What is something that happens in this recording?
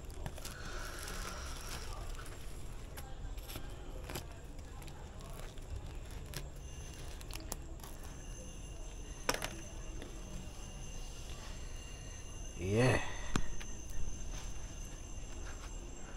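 A knife scrapes and cuts through a crisp, charred crust.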